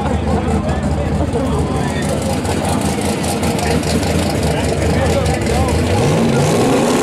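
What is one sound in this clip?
A race car engine idles with a loud rough rumble.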